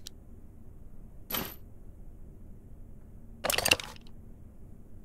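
A figurine clicks into place on a carved box.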